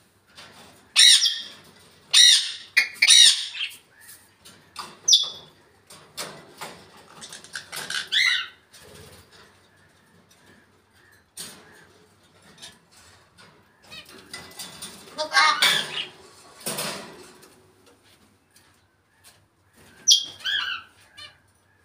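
A parrot squawks, whistles and chatters in bursts close by.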